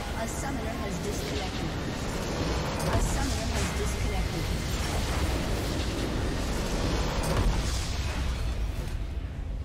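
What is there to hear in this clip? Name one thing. A game's crystal shatters in a loud, rumbling explosion.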